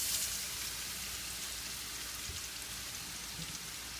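Vegetables tumble from a metal bowl into a pan.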